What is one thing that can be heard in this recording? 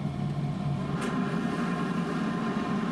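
A steam iron hisses as it presses cloth.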